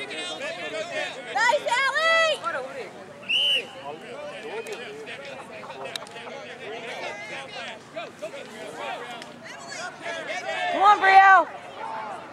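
Adults call out and talk from the sideline.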